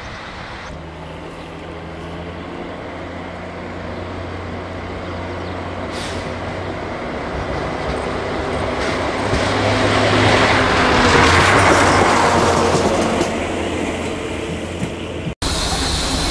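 A railcar's diesel engine rumbles as it approaches and passes close by.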